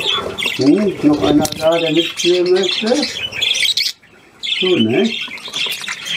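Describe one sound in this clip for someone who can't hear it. Wings flutter as a budgie takes off.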